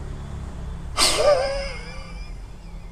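A man blows forcefully into a breathing tube.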